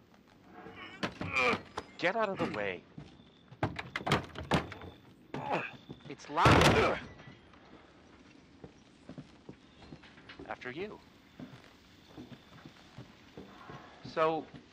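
A younger man speaks sharply nearby.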